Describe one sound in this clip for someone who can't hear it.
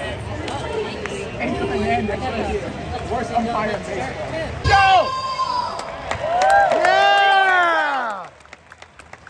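A large crowd chatters outdoors.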